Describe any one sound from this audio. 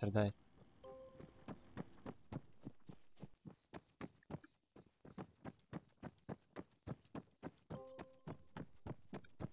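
Footsteps crunch on gravel at a steady pace.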